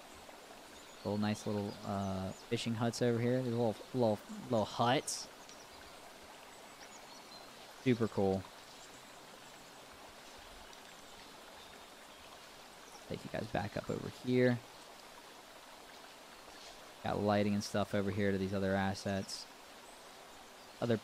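A young man talks calmly into a close microphone, in short bursts with pauses.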